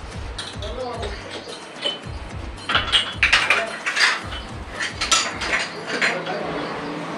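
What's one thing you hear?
Dishes clink on a counter.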